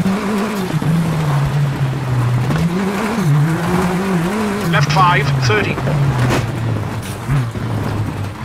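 Tyres crunch and rumble over a gravel track.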